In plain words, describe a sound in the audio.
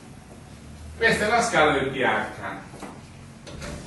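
An elderly man speaks briefly.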